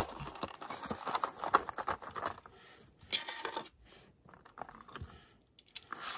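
Stiff plastic packaging crinkles and crackles up close.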